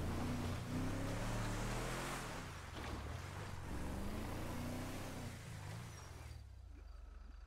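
A car engine roars as a vehicle drives along a road.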